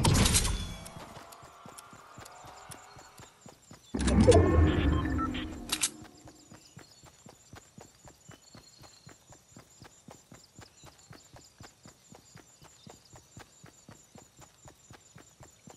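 Footsteps patter quickly and evenly across grass.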